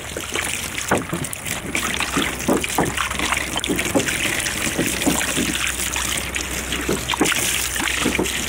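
Water pours from a jug and splashes onto a rifle.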